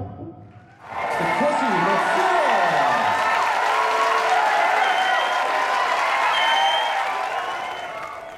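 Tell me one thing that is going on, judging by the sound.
A crowd claps and applauds.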